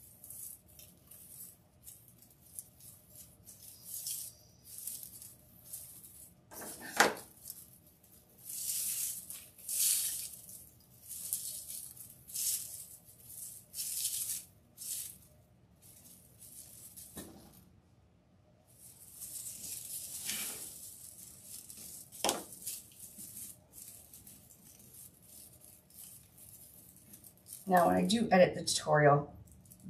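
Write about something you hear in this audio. Dry raffia and mesh ribbon rustle and crinkle close by.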